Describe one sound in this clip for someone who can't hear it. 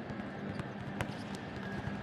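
A volleyball thumps off a player's hands.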